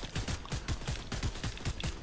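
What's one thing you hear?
A pickaxe swings with a sharp whoosh and impact.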